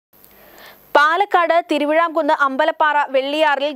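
A woman speaks calmly and clearly into a microphone, reading out the news.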